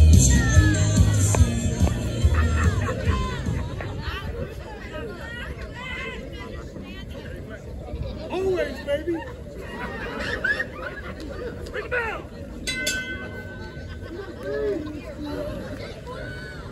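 An outdoor crowd chatters and calls out.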